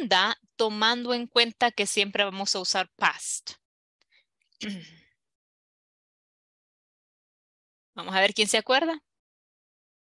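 A woman speaks clearly and slowly over an online call, pausing between phrases.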